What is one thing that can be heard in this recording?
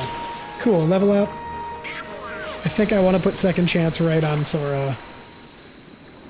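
A magic blast bursts with a bright crackle.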